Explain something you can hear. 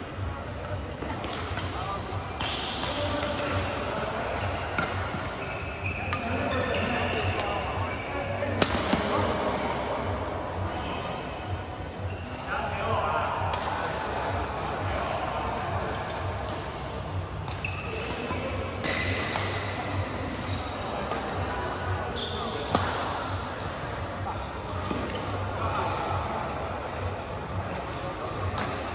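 Voices murmur and call out in a large echoing hall.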